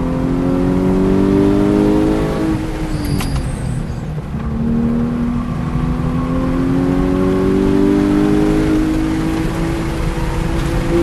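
A race car engine roars, climbing in pitch as it speeds up, dropping as it brakes, then climbing again.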